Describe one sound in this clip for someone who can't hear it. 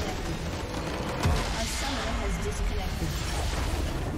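A structure explodes with a loud blast.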